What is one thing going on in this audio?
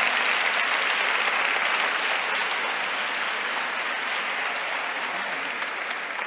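A large crowd claps and applauds steadily.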